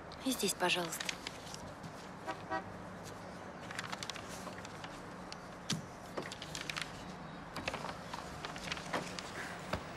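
Sheets of paper rustle and flip.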